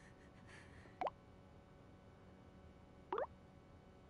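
A phone gives short message alert tones.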